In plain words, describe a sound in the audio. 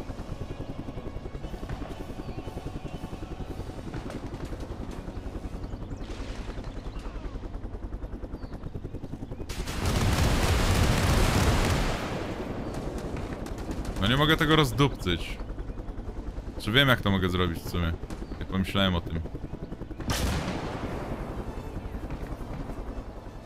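A helicopter's rotor chops steadily overhead.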